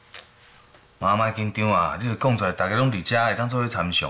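A young man speaks calmly and encouragingly.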